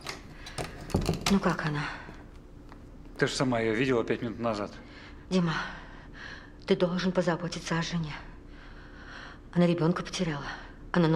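A middle-aged woman speaks with concern, close by.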